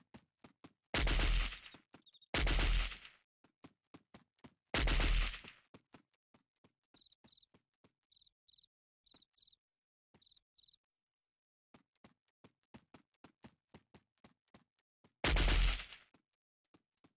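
A rifle fires loud shots that echo briefly.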